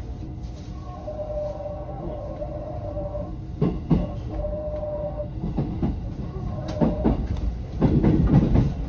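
Train wheels clack and squeal over rail joints and points.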